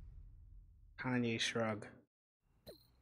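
A young man exclaims excitedly close to a microphone.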